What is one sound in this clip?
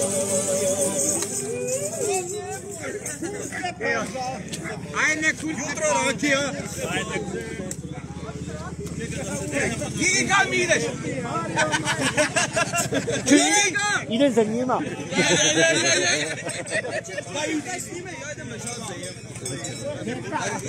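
Men and women chat and laugh nearby in a lively crowd.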